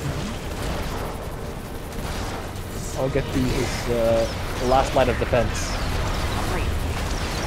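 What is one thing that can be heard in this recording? Battle explosions and bursts of fire rumble steadily.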